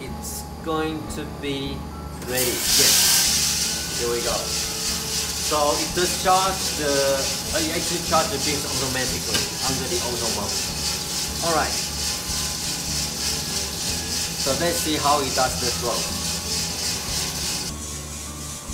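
A coffee roaster hums steadily.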